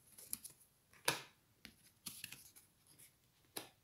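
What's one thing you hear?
Cards tap and slide softly on a table.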